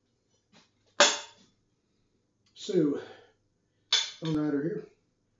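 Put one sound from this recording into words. A metal pan clanks as it is handled.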